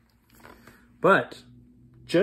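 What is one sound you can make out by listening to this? A middle-aged man speaks close to the microphone, reading out.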